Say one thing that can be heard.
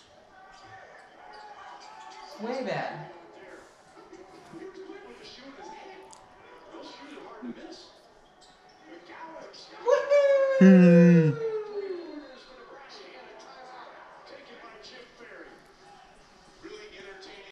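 Voices play from a television across the room.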